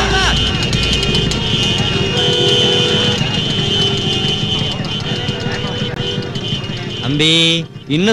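Car and rickshaw horns honk over and over in a traffic jam.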